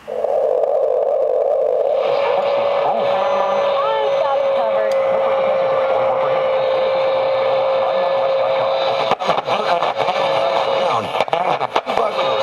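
A radio hisses with static as its tuning dial is turned.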